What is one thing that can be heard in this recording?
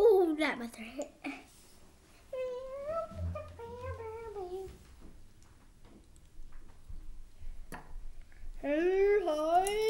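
A young boy talks and squeals with animation close by.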